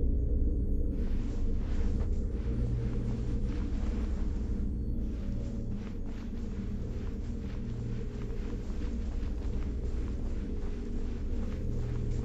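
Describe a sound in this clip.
Soft sliding steps hiss across a smooth floor.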